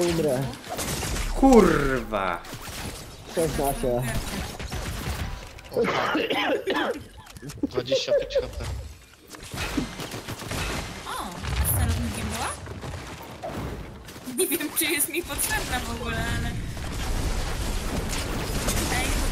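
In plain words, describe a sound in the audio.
Gunshots crack from a game.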